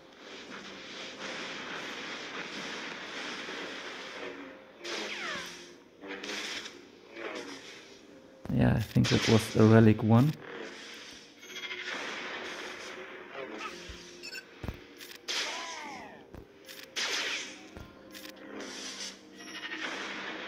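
Lightsabers hum and clash in a fight.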